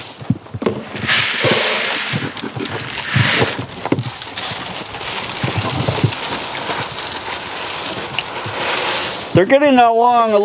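Dry feed pours and rattles into a trough.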